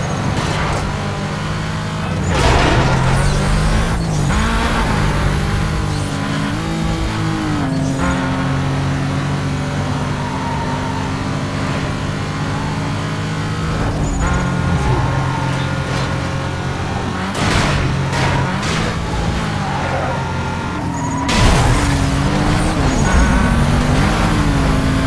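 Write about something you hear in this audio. A car engine roars at high revs, rising and falling as gears shift.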